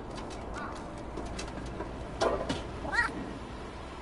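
Small claws patter and scrape on a tin roof.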